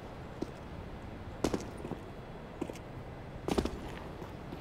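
A player character lands from a jump with a thud.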